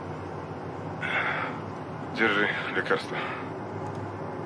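A man speaks in alarm close by.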